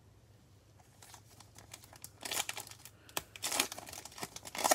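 Gloved hands crinkle and tear open a plastic foil wrapper.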